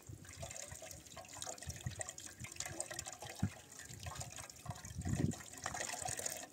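Water trickles from a tap into a metal pot.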